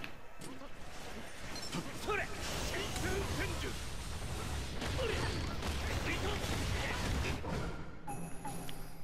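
Magical fire attacks roar and crackle.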